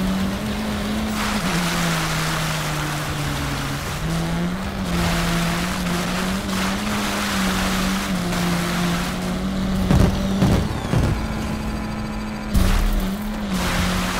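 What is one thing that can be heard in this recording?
Tyres crunch and skid over sand.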